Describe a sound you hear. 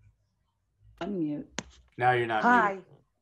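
A middle-aged woman speaks over an online call.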